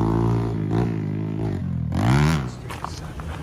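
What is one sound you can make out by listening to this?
A dirt bike engine revs and whines.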